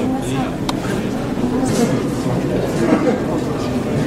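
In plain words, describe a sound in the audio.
A crowd of visitors murmurs in an echoing indoor hall.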